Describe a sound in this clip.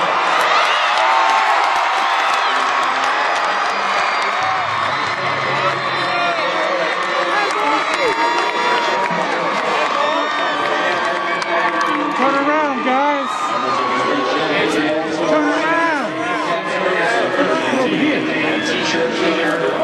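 A crowd of young men cheers and shouts loudly outdoors.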